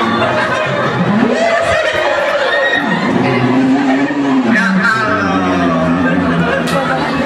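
A man sings loudly through a loudspeaker.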